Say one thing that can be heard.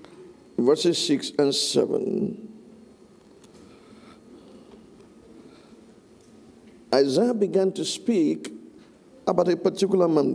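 An elderly man speaks slowly and deliberately through a microphone in a large echoing room.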